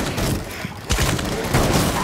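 Wooden planks splinter and break under gunfire.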